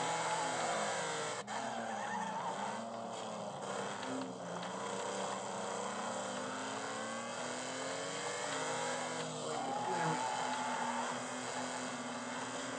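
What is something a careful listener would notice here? A racing car engine revs up and down loudly.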